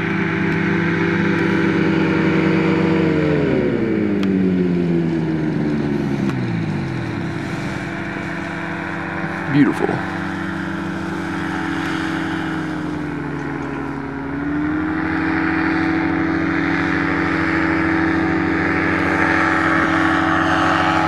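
A second small aircraft engine drones steadily and grows louder as it approaches.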